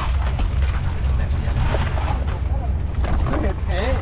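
Ice crunches underfoot.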